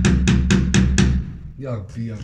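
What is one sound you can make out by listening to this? A metal tool knocks sharply several times on a hard floor.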